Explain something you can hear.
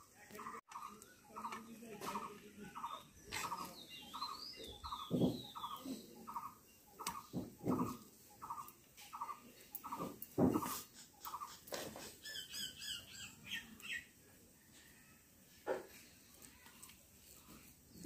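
A metal spatula scrapes and taps against a steel plate.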